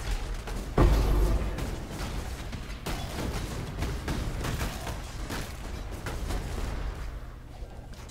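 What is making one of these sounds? Fiery spell blasts and explosions burst in quick succession.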